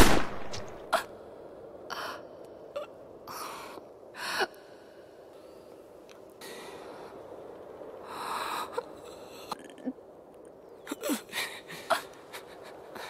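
A young man sobs and gasps close by.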